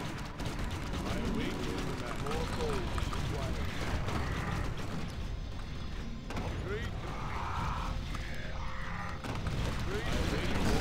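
Game spell and combat effects chime and clash.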